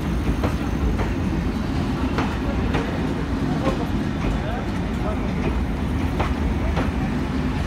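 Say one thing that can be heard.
A passenger train rumbles steadily past close by.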